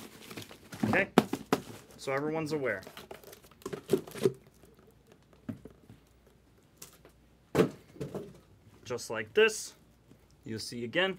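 Cardboard boxes knock and rustle as they are handled.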